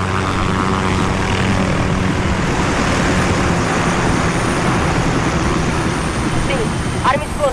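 A helicopter's rotor drones loudly overhead.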